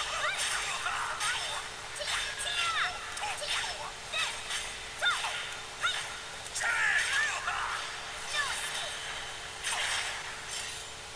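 Metal blades clash and ring out sharply, again and again.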